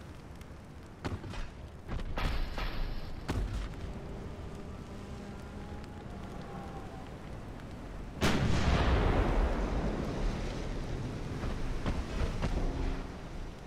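Heavy naval guns fire with deep booms.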